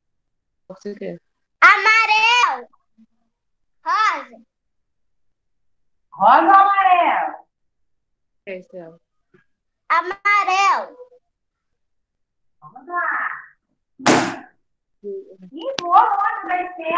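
A young girl speaks over an online call, in short bursts with pauses.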